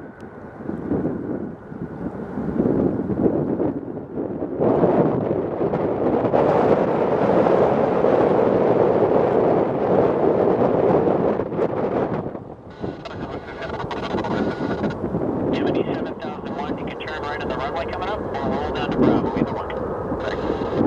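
A jet airliner's engines roar loudly as it rolls down a runway.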